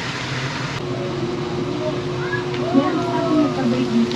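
Food pieces slide into hot oil with a louder burst of sizzling.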